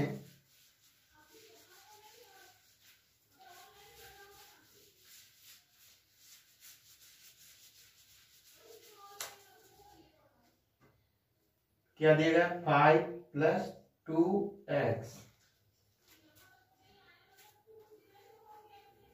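A cloth rubs and wipes across a board.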